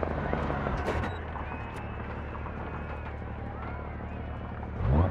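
A car engine slows and idles quietly.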